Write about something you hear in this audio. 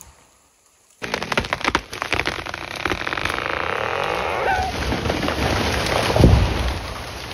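A chainsaw roars up close.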